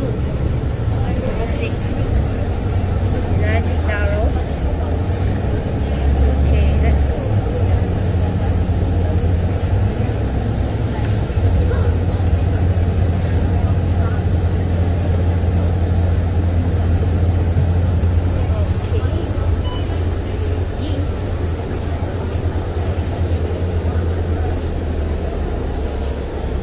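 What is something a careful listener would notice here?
Bus tyres hum on the road.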